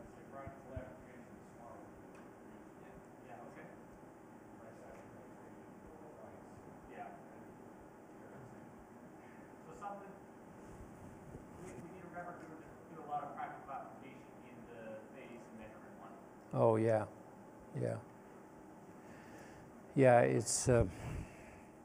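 An elderly man speaks calmly and faintly, far off in a large echoing room.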